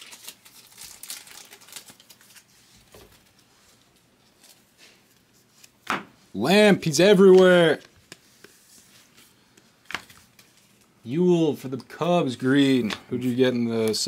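Trading cards shuffle and flick in a man's hands.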